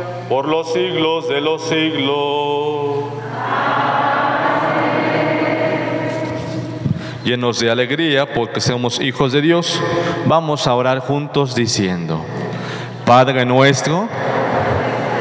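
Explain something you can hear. A man sings a prayer through a microphone in an echoing hall.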